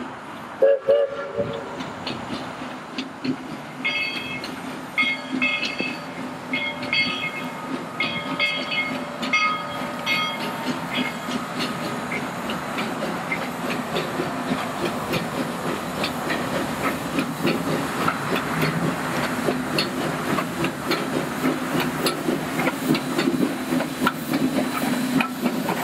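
Train wheels clatter and click over the rail joints.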